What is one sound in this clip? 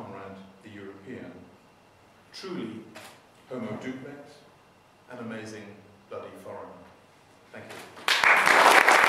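An elderly man speaks calmly through a microphone in a large echoing hall.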